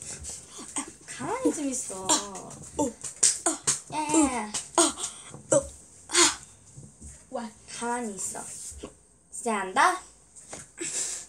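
A boy talks and laughs excitedly over an online call.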